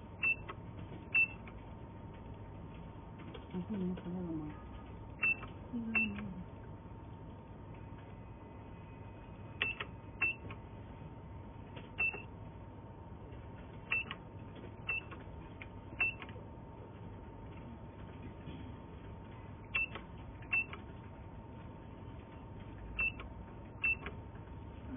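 Buttons on a control keypad click sharply every second or two.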